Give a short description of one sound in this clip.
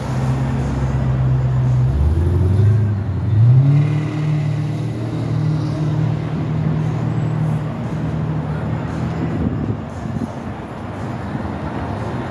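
Cars drive past on a nearby street with a low engine rumble.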